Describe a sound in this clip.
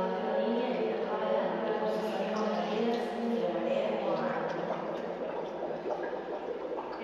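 A woman sings long, wavering notes in an echoing room.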